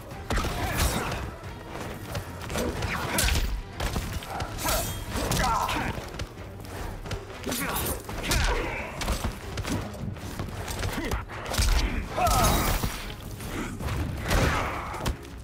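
Punches and kicks thud and smack in quick bursts.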